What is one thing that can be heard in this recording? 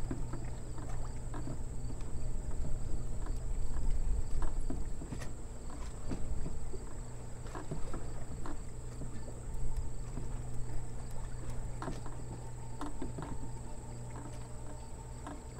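Wind blows softly across open water outdoors.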